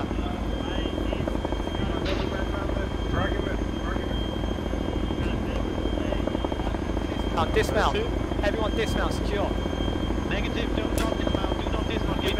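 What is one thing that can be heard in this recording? A helicopter's rotor thuds steadily close by.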